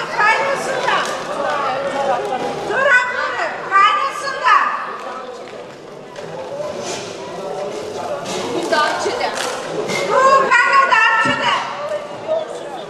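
A woman speaks loudly into a microphone, heard through a loudspeaker.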